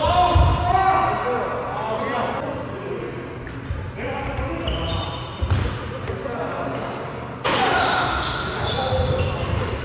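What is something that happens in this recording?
Shoes squeak on a wooden court.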